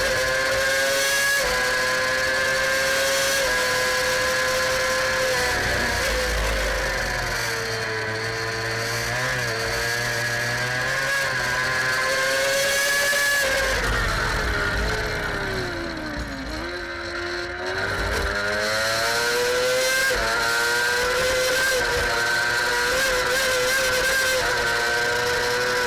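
Wind rushes hard past the rider's helmet.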